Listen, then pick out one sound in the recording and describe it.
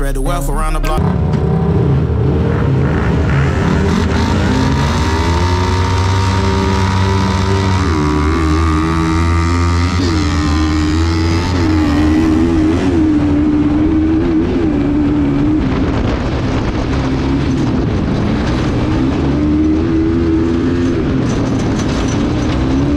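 A buggy engine idles and revs loudly close by.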